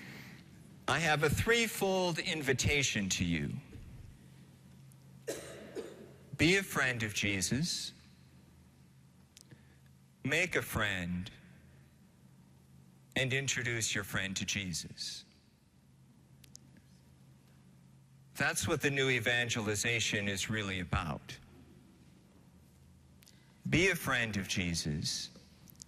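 An elderly man speaks slowly and solemnly into a microphone, in short phrases with pauses, echoing in a large hall.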